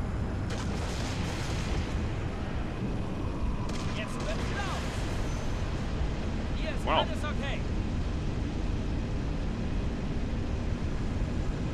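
Rotor engines of a hovering aircraft hum and rumble steadily.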